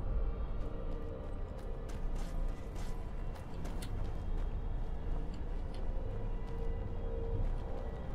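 Footsteps fall on stone in a hollow, echoing passage.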